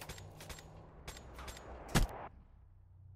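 Rapid gunshots ring out in quick bursts.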